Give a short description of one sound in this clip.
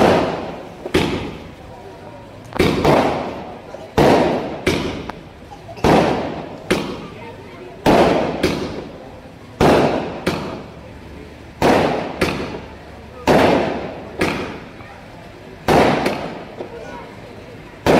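Fireworks burst overhead with loud booming bangs, one after another.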